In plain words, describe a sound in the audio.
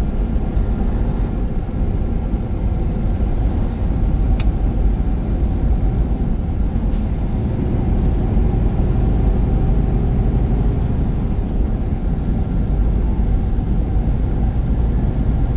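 Tyres roll steadily on a smooth road.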